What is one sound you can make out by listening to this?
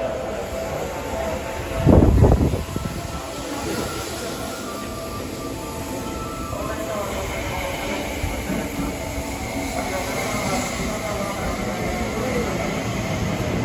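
A train rumbles and rattles steadily as it pulls into a station.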